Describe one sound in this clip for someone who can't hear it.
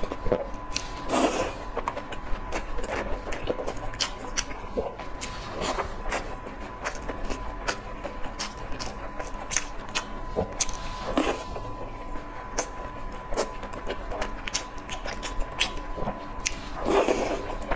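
A young woman slurps and sips sauce.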